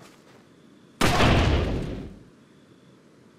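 A pistol fires a single loud shot that echoes away.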